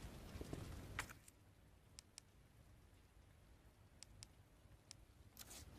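Soft menu clicks tick several times.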